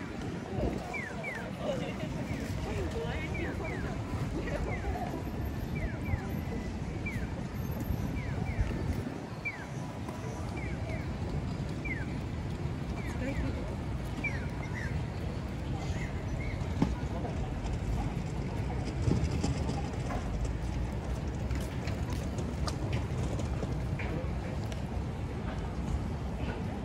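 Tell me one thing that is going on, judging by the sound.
Pedestrians' footsteps patter on pavement.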